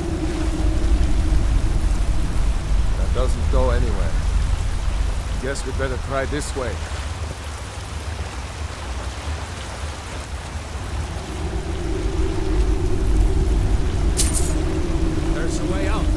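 Water rushes steadily in the distance.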